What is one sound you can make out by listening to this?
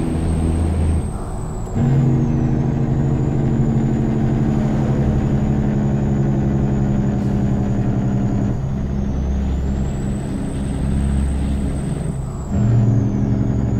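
An inline-six diesel truck engine briefly drops away and comes back in during gear shifts.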